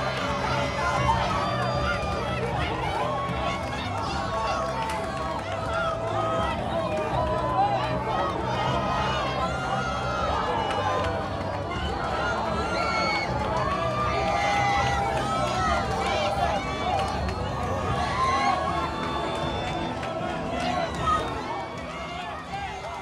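A crowd of men and women chatters and calls out all around, loud and busy.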